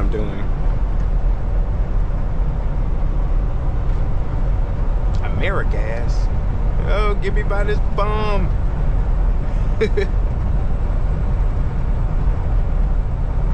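A truck engine drones steadily from inside the cab.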